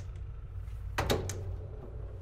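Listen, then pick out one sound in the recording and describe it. A washing machine door shuts with a firm click.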